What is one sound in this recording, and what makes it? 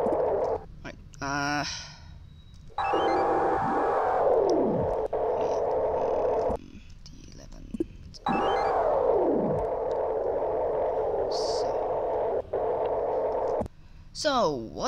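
Short electronic blips and sweeping tones sound.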